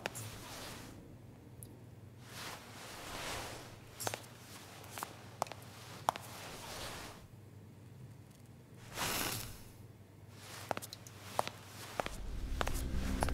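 Footsteps tap slowly on a hard floor.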